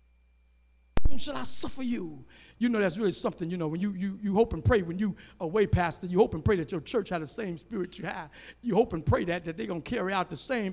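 An elderly man preaches with animation through a microphone in a large echoing hall.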